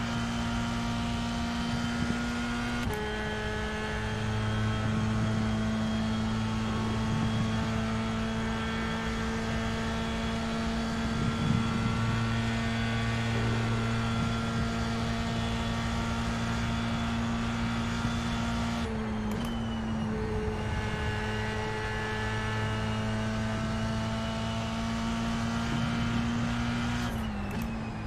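A racing car engine drones loudly at high revs, dropping and rising in pitch as it changes gear.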